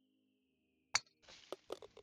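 A golf club taps a ball with a short click.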